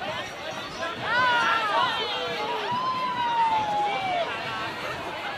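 Men and women whoop and cheer with high, sliding shouts.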